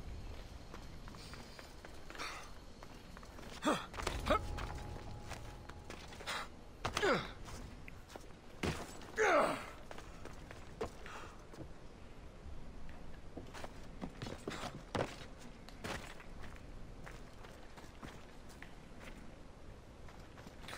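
Footsteps patter quickly over stone and wooden planks.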